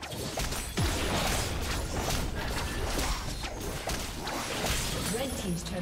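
Game combat effects clash and zap in rapid bursts.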